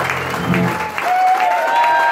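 An acoustic guitar rings out with a final strummed chord.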